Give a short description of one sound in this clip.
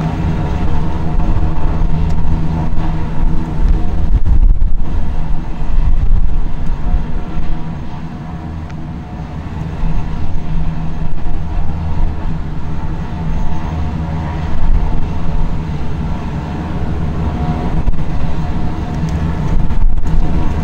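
Wind buffets and rumbles outdoors.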